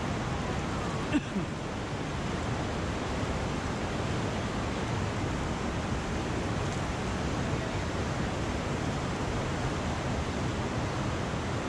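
Rushing river water roars steadily, echoing off rock walls.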